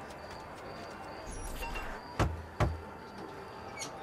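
A door swings open with a thud.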